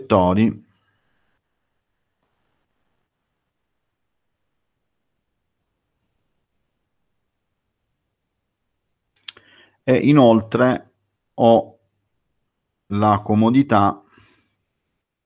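A man speaks calmly in short phrases over an online call, with long pauses.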